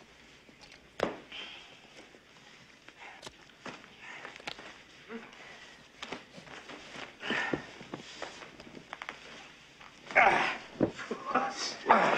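A heavy sack rustles and thumps on the floor.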